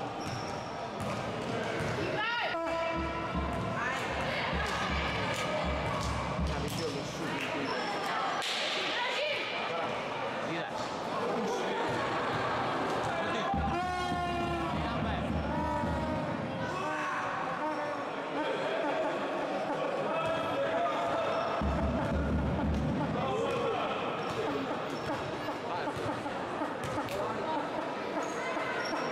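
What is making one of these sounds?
Basketball shoes squeak on a hard floor in a large echoing hall.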